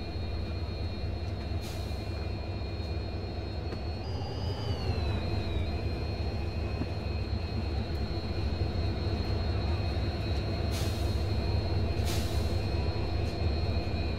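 A diesel locomotive engine rumbles steadily as a train rolls along.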